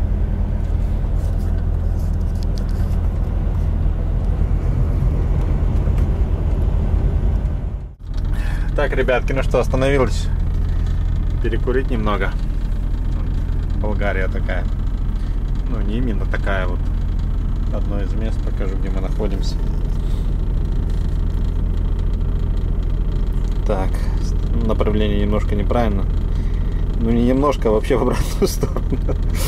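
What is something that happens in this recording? A truck engine rumbles steadily inside the cab.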